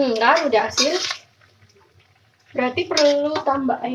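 A metal spatula scrapes and stirs food in a wok.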